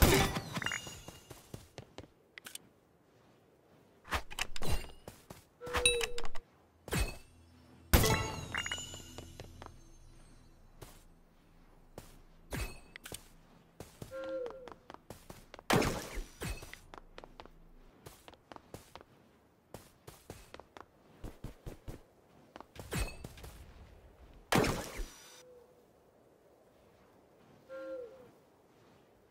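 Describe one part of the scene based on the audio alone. Short game sound effects of hits and clicks sound again and again.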